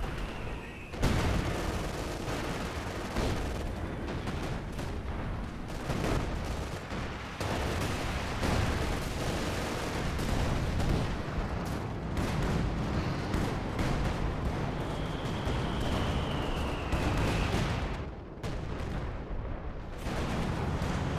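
Explosions boom and gunfire crackles in a battle.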